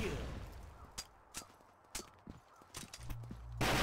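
A rifle fires a few sharp single shots.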